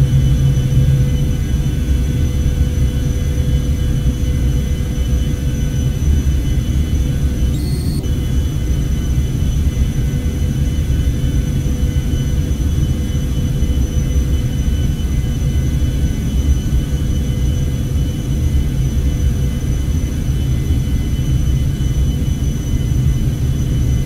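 A jet engine roars steadily, with the low rumble of air rushing past an aircraft cabin.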